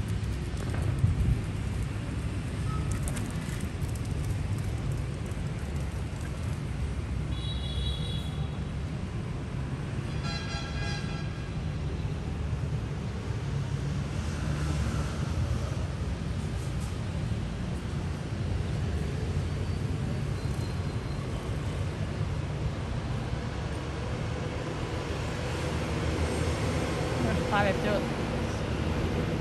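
Wind rumbles steadily outdoors.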